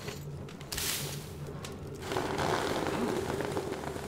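A fire crackles in a stove.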